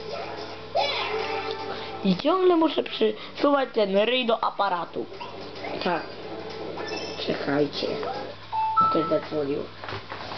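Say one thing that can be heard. Cheerful video game music plays from a television speaker.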